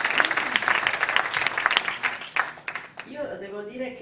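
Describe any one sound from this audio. An audience applauds in a large room, then the clapping dies away.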